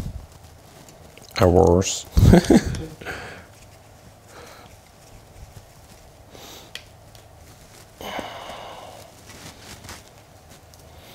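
Spruce needles rustle as branches are bent by hand.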